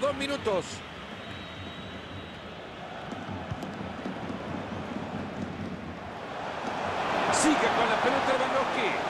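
A stadium crowd roars steadily and swells louder toward the end.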